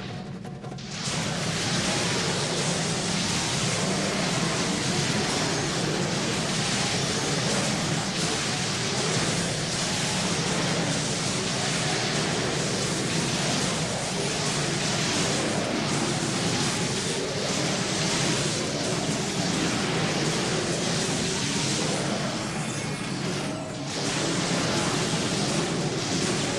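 Clashing combat sounds and spell effects play from a video game.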